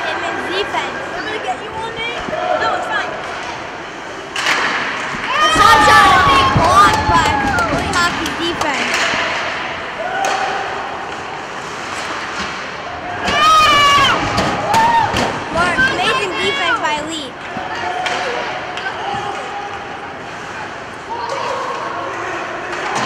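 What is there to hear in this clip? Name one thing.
Skates scrape and carve across the ice.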